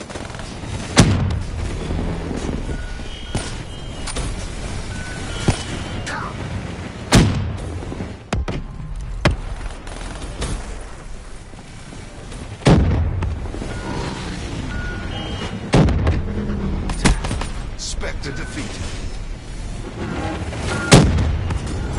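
Gunshots crack loudly with booming echoes.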